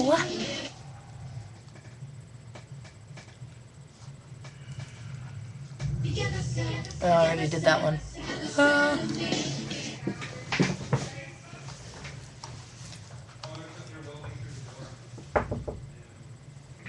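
A young woman speaks quietly close to a microphone.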